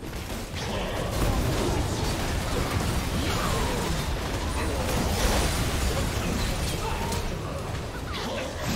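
Fighting sound effects clash, crackle and boom in rapid bursts.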